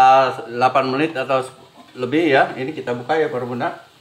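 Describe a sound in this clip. A metal lid clinks as it is lifted off a pot.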